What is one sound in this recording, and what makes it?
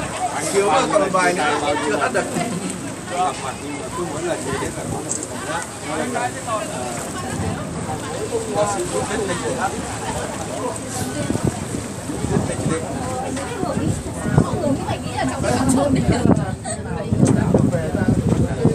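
A crowd of men and women chatters and calls out loudly all around.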